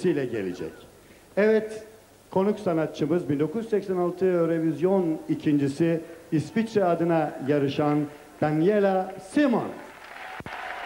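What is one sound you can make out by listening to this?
An elderly man speaks with animation into a microphone over loudspeakers.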